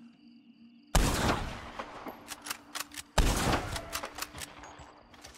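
A rifle fires two loud shots that echo away.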